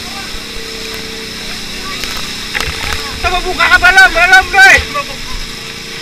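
A fire hose sprays a jet of water.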